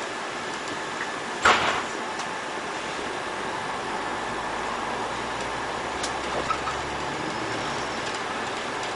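A city bus drives along a road, heard from inside.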